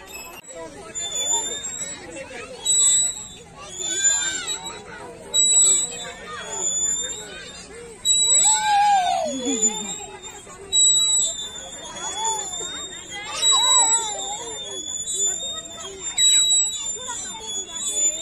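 A swing's chains squeak in a regular rhythm as the swing goes back and forth.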